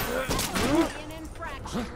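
A blaster fires a crackling energy shot.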